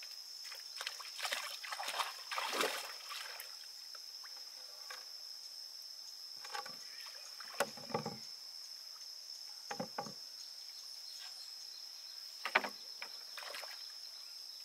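Water splashes as a person wades near a boat.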